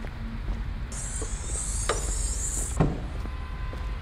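A luggage hatch on a bus slams shut with a thud.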